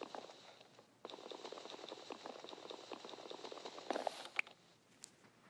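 A wooden block is hit with rapid, dull knocks until it breaks.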